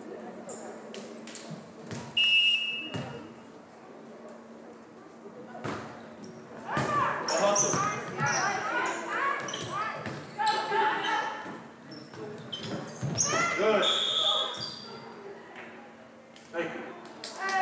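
A volleyball is hit with sharp smacks in a large echoing gym.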